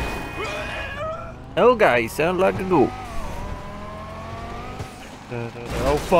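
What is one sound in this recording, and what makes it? A sports car engine revs and roars, rising and falling in pitch.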